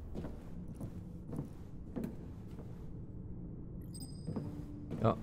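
Footsteps clank slowly on a metal floor.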